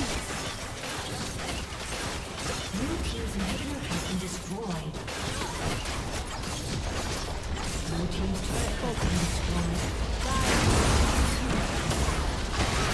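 Game spells and weapon hits crackle and clash in a busy fight.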